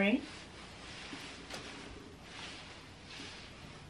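A puffer coat rustles as a young woman turns around.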